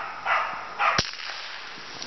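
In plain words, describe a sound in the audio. A gun fires a single shot nearby.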